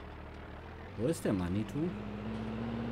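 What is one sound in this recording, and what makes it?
A tractor engine revs up quickly and then settles.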